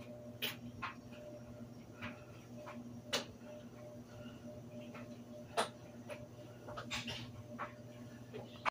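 An electrical hum drones steadily.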